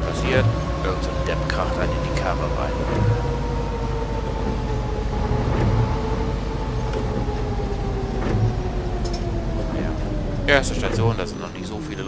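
A bus engine hums with a whine that slowly drops in pitch, then dies down.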